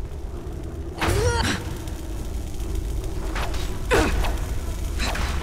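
Electric bolts crackle and crack sharply.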